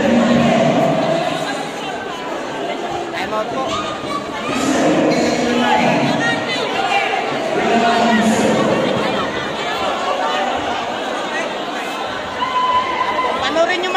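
A large crowd chatters and shouts loudly in an echoing hall.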